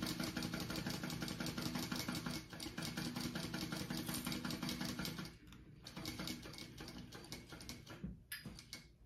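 A sewing machine whirs rapidly as it stitches.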